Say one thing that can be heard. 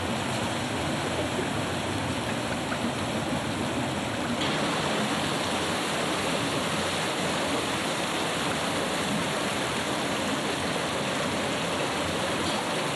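Water pours and splashes from a water mill's wheel.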